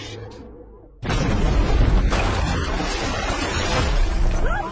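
A vehicle smashes through a wall with a loud crash.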